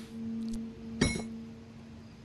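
A heavy metal wheel drops onto a wooden floor with a loud clank.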